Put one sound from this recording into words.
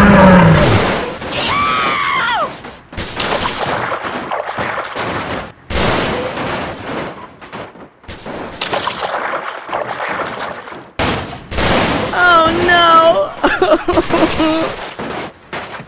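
A heavy bus crashes and clatters.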